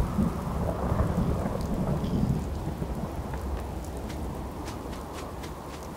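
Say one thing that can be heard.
Footsteps tread on rough ground outdoors.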